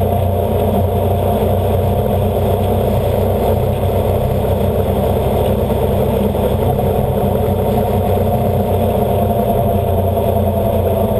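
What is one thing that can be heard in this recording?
A motorcycle engine hums steadily at close range.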